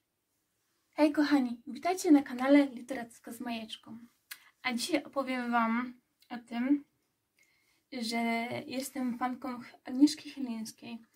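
A young woman talks with animation close to the microphone.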